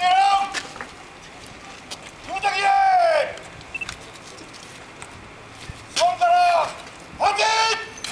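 A man shouts long drawn-out commands outdoors.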